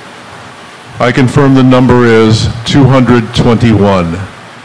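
An older man speaks calmly into a microphone over loudspeakers in a large hall.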